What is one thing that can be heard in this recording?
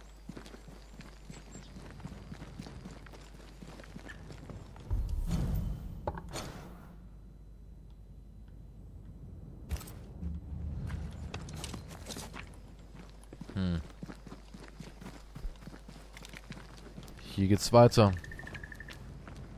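Footsteps crunch quickly over gravel and dirt.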